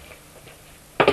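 A wicker basket crashes down with a loud thump.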